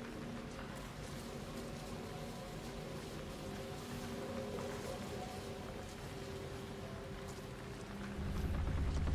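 Footsteps scuff softly on a stone floor.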